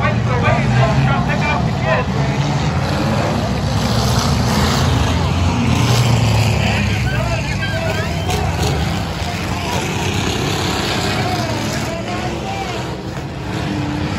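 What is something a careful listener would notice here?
A crowd chatters loudly all around.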